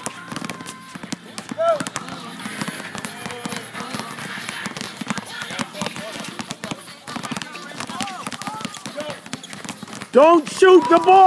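Basketballs bounce repeatedly on a hard outdoor court.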